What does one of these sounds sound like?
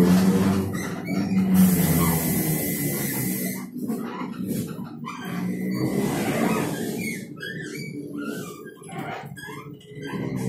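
A bus rattles and rumbles over the road.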